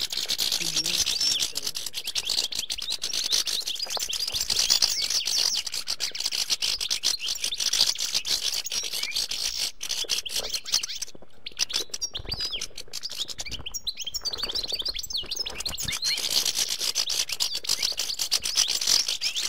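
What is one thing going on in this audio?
Small songbirds twitter and trill rapidly and without pause.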